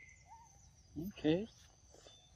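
A monkey squeals briefly close by.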